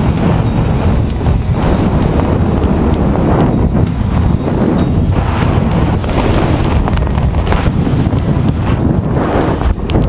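Strong wind rushes and buffets loudly against a microphone.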